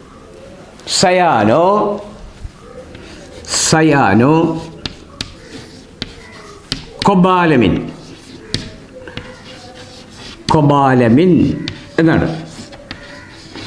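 An elderly man speaks slowly in drawn-out, sing-song phrases, close by.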